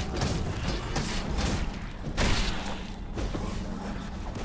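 Swords clang and swish in a fast fight.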